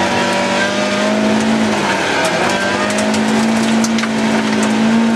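A car engine roars loudly from inside the cabin, its pitch dipping and rising as the driver shifts gear.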